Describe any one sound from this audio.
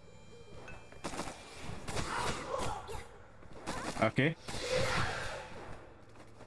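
Sword slashes whoosh and clash in a game.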